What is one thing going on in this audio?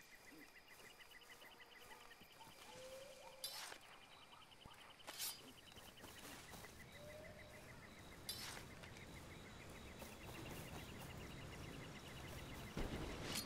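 Tall dry grass rustles as someone walks through it.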